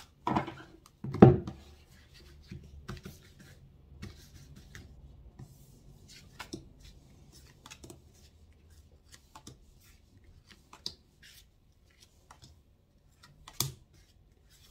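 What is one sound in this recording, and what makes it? Paper cards slide and tap softly on a table as they are laid out.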